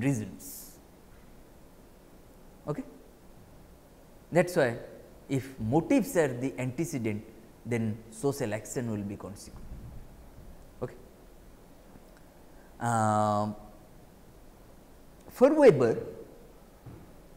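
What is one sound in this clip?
A man speaks calmly and clearly into a close microphone, with pauses.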